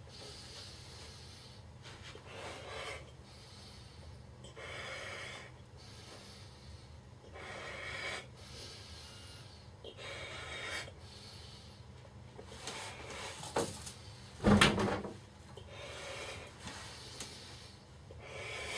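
A young man blows into a balloon in long, breathy puffs.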